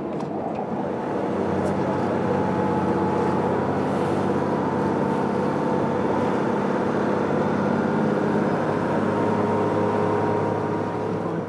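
Outboard motors drone as a motorboat speeds along.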